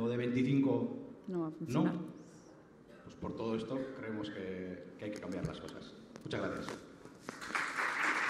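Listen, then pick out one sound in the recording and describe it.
A woman speaks calmly through a microphone over loudspeakers in a large room.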